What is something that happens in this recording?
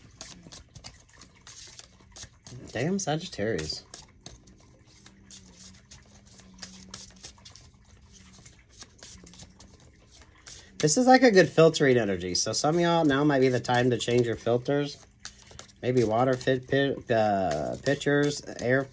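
Playing cards riffle and click as they are shuffled by hand.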